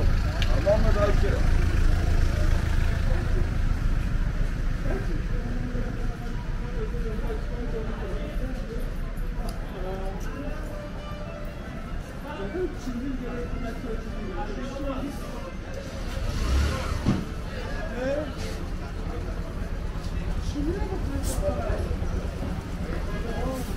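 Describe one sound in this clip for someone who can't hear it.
Men and women talk in passing along a busy street.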